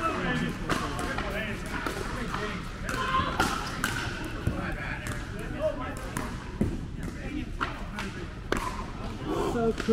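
Several men talk casually in an echoing indoor hall.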